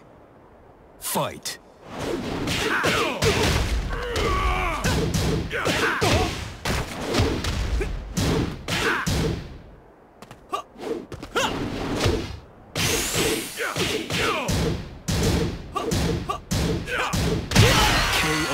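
Punches and kicks land with sharp, heavy thuds.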